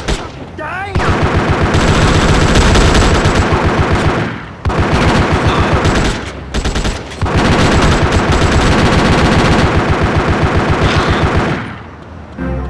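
Guns fire in rapid, rattling bursts.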